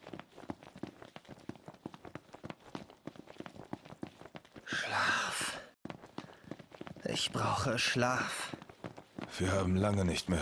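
Quick footsteps slap on a hard road, echoing in a tunnel.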